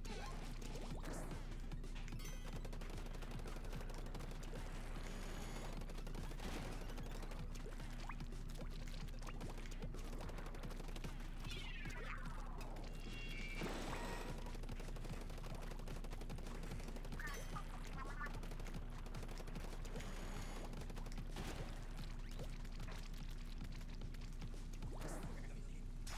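Ink splatters and sprays in bursts from a video game.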